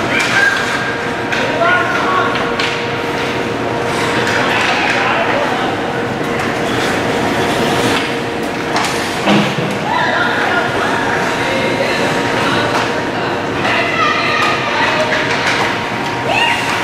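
A crowd of spectators cheers and shouts in a large echoing rink.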